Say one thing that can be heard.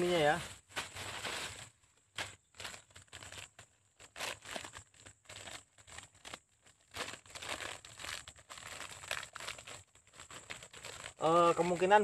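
A plastic packet crinkles as a man opens it.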